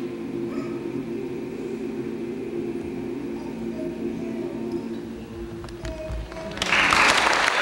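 A choir sings in an echoing hall.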